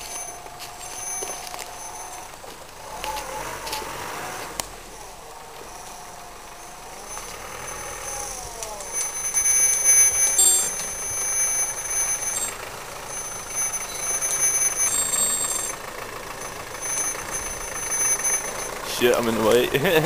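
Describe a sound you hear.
Tyres crunch and slip on mud and twigs.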